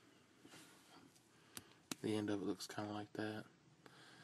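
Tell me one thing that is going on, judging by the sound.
A marker cap is pulled off with a soft click.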